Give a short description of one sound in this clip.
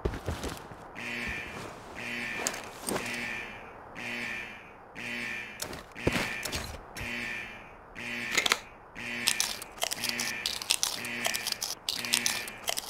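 An electronic alarm beeps in a steady, repeating pulse.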